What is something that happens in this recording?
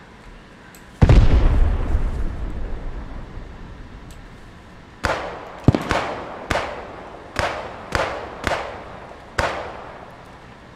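Rifle shots crack one after another and echo outdoors.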